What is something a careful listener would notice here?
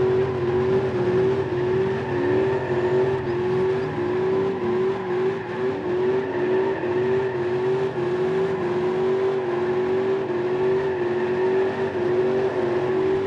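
A siren wails in rising and falling sweeps.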